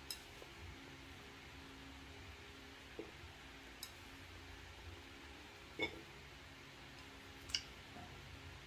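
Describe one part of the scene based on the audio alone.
Chopsticks click and tap against dishes.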